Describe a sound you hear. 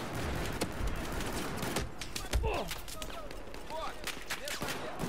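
Gunfire bursts out in sharp, rapid cracks.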